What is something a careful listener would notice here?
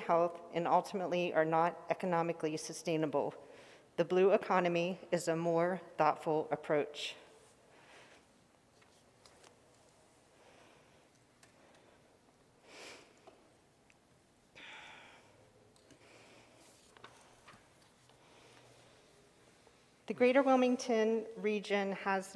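A woman speaks calmly into a microphone, pausing for a long while in between.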